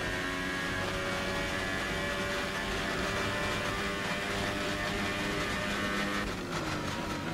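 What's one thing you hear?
A racing car engine screams at high revs, holding a steady high pitch.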